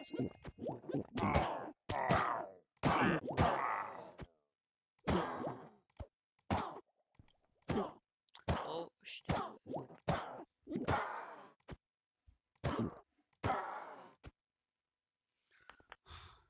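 A sword swishes through the air in repeated swings.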